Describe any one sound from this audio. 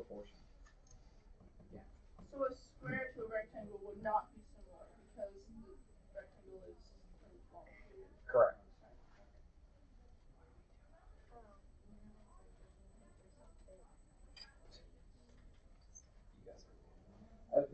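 Children chatter and talk in a room nearby.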